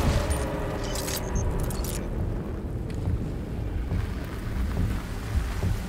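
Wind blows steadily outdoors, with a low rumble.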